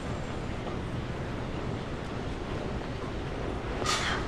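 A suitcase bumps and scrapes as it is pulled off a baggage belt.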